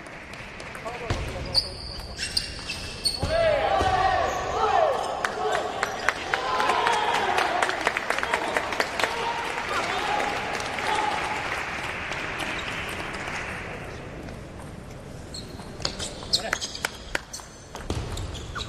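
Table tennis balls click on tables and paddles.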